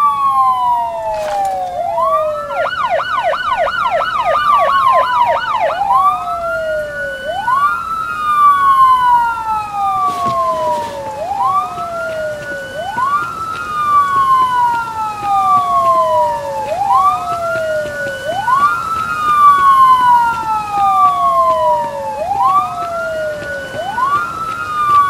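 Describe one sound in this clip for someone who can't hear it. A police siren wails on and on.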